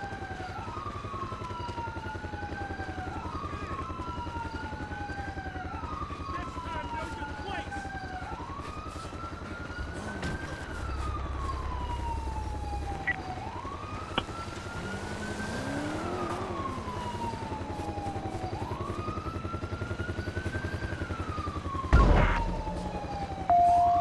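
Footsteps thud quickly on dirt as a man runs.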